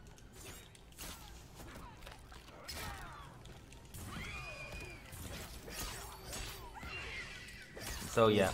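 Blows land with heavy thuds and slashes in a fight.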